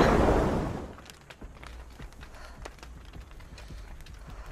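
Footsteps crunch softly on the ground.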